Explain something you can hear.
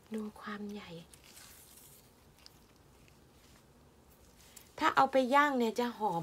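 Dry mushrooms rustle and crackle as hands stir them.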